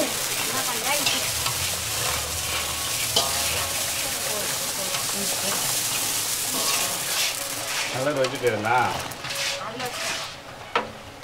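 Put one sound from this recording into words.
Hot oil sizzles loudly in a pan.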